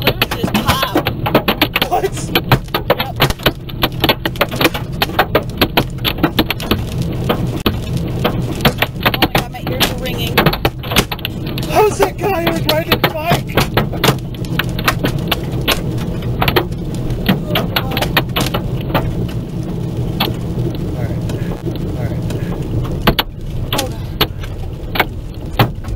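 Hail pelts and rattles hard on a car's windscreen and roof.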